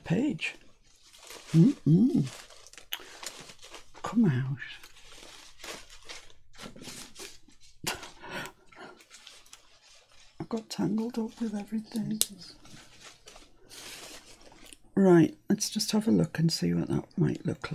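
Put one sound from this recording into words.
A woman talks calmly and closely into a microphone.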